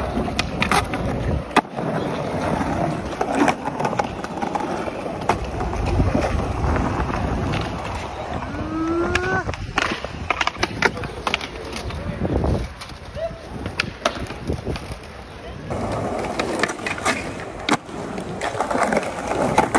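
A skateboard clacks and slaps hard against concrete.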